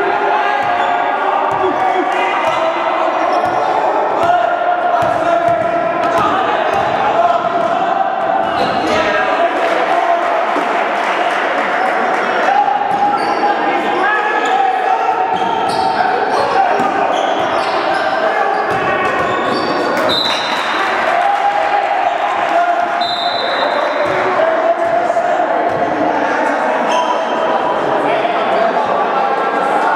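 Spectators chatter in an echoing gym.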